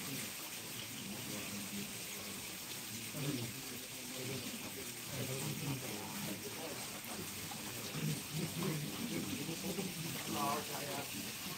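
Men in a crowd talk and murmur nearby outdoors.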